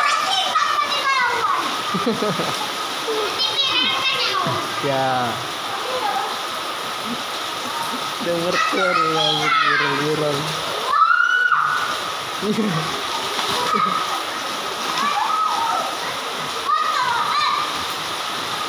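Young girls shout and laugh excitedly nearby.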